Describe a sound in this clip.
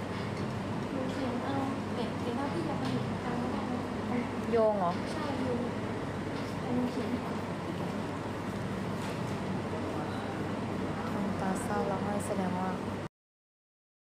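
A young woman talks casually, close to a phone microphone.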